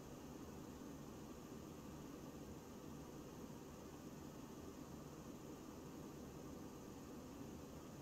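Jet engines drone steadily.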